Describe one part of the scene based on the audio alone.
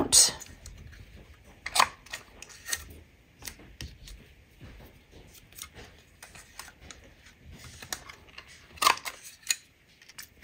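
A paper punch clicks and thumps as it cuts card.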